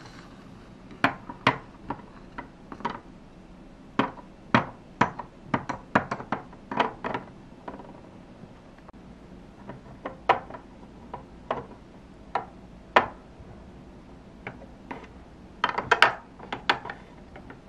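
Small plastic toys tap and click against a plastic dollhouse.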